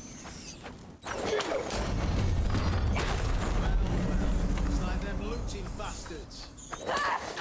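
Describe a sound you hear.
A heavy wooden crate rumbles as it drops on a rope.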